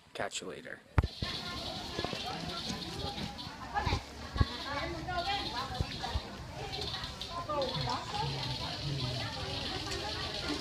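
A crowd of people chatters in a busy, bustling space.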